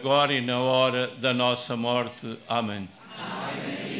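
An elderly man chants into a microphone.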